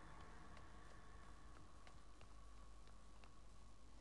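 Footsteps run across creaking wooden boards.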